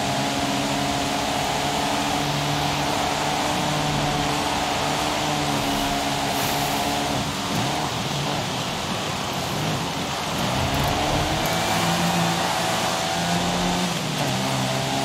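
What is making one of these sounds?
A small car engine revs hard, rising and falling in pitch as it shifts gears.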